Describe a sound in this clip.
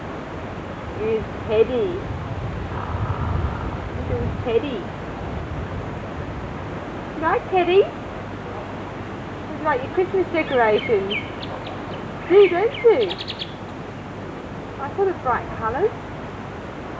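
A young woman talks softly in a high, sing-song voice close by.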